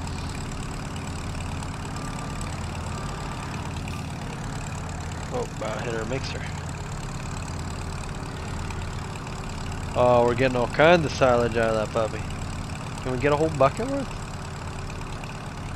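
A skid steer loader's engine rumbles steadily.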